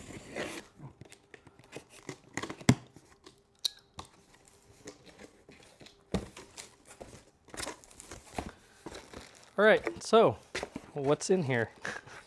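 Cardboard flaps scrape and rustle as a box is opened.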